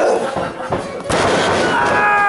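A body slams hard onto a wrestling ring mat with a loud thud.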